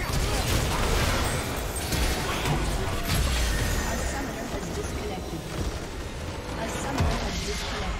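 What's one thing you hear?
Magic blasts and clashing weapons crackle and boom in a busy fight.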